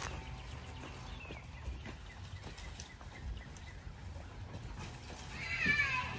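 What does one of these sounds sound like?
A wheelbarrow rolls over grass.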